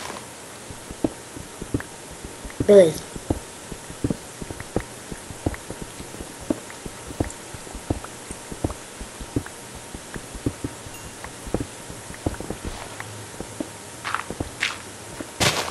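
Blocks are dug out with quick, repeated crunching knocks.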